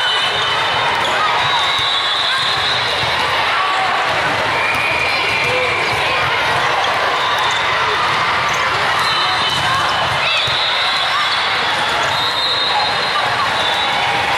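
Squeaky shoes squeal on a hard court.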